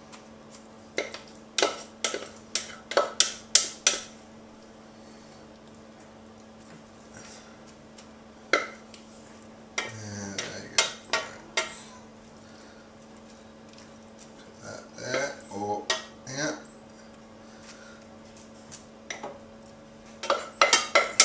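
A metal spoon scrapes and taps against the inside of a saucepan.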